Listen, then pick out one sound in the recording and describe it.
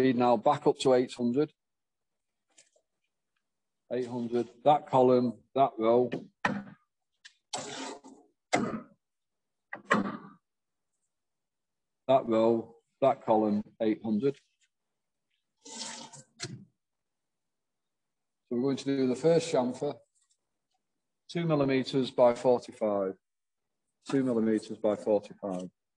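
A man explains calmly, heard through an online call, with short pauses.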